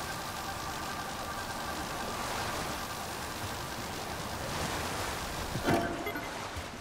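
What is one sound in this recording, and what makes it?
Fan engines whir and hum steadily, then cut out.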